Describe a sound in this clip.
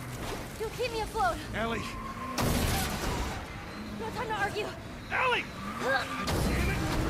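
A girl talks with animation.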